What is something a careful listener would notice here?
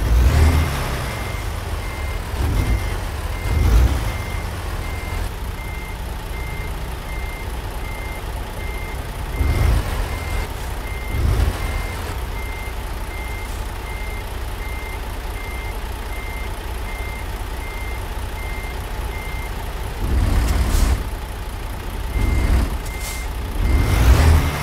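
A diesel truck engine idles with a deep, steady rumble and revs up in short bursts.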